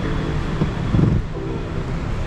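A car seat back folds down with a thud.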